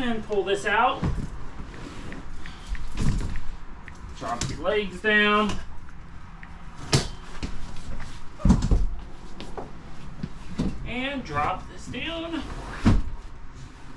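A sofa bed slides out with a thump.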